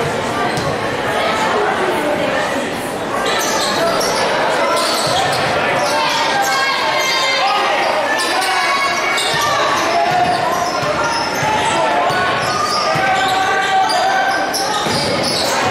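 A large crowd cheers and chatters loudly in an echoing gym.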